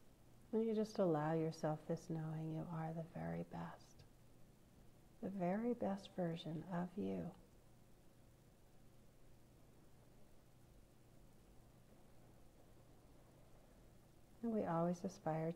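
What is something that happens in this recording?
A middle-aged woman speaks calmly and close, with pauses, heard through a phone or online call.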